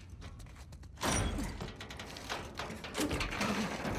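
Double doors swing open.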